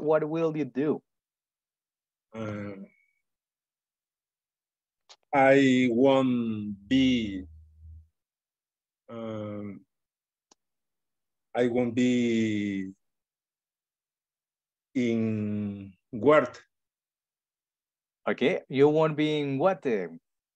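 A man speaks in short phrases over an online call.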